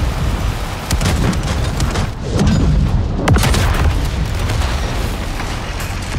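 Shells explode with heavy blasts nearby.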